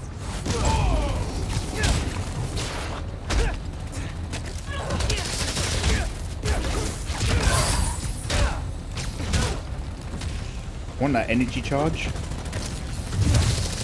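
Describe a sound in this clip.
Punches and kicks land with heavy thuds in a game fight.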